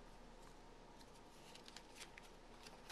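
Paper pages riffle softly as a small book is flipped through.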